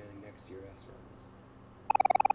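A man speaks quietly into a headset microphone.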